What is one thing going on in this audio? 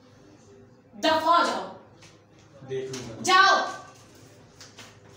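A woman speaks sharply up close.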